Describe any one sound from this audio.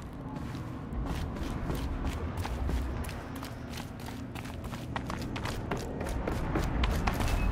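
Footsteps run quickly over hard, rocky ground.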